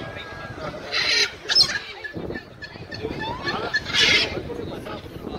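A parrot squawks loudly.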